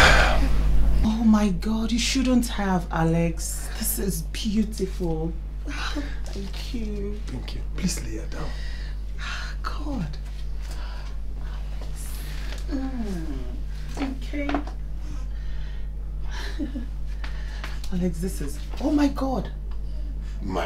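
A woman speaks warmly, close by.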